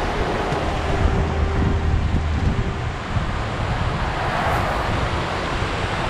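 A fast river rushes over rocks.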